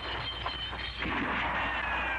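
A gun fires a single loud shot indoors.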